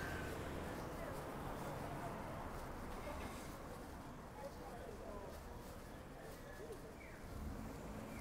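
A car's engine idles and drives slowly past.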